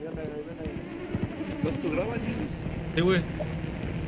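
A drone buzzes overhead.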